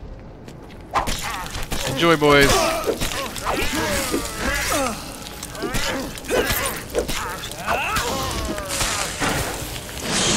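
Magic blasts crackle and burst in a fierce fight.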